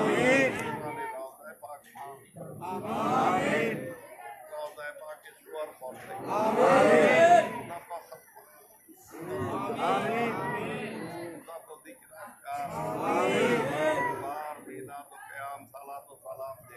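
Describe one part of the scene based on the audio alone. A man chants a prayer loudly through a loudspeaker, in bursts with pauses.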